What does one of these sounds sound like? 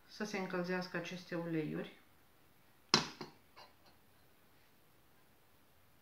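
A spoon clinks against a metal cup.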